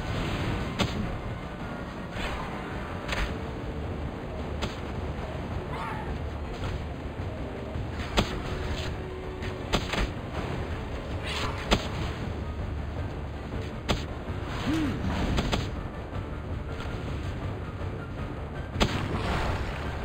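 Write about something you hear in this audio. Flames roar and crackle in bursts.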